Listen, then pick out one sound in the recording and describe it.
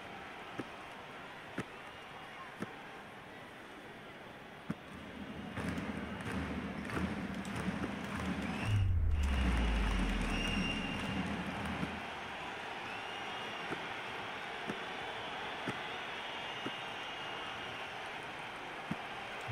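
A ball bounces on a wooden floor.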